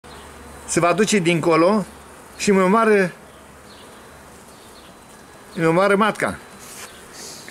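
Bees buzz close by.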